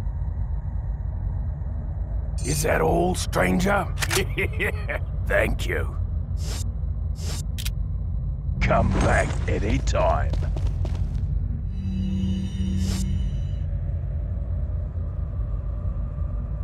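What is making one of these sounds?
Menu selections click and chime.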